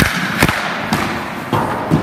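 Goalie pads thump onto the ice in a butterfly drop.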